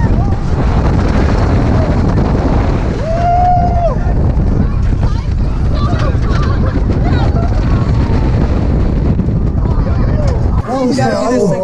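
Wind roars loudly past on a fast roller coaster.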